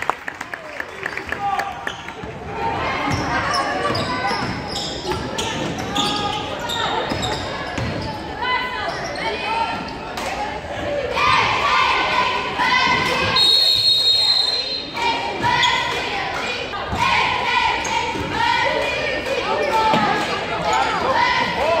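Sneakers squeak on a hard court in an echoing gym.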